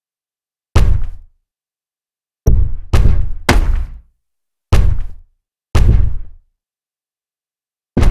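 Heavy punches land with loud thuds.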